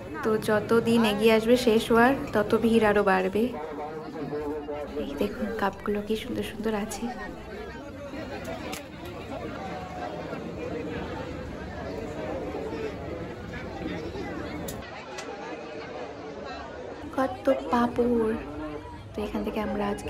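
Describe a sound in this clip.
A crowd murmurs and chatters all around.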